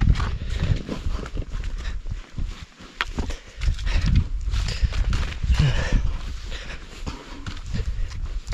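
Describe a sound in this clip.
Footsteps crunch on a dry dirt path.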